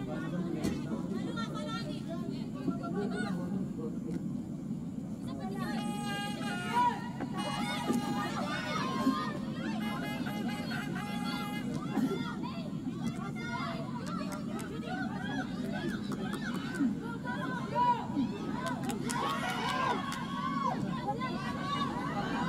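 Young women shout to each other across an open pitch outdoors.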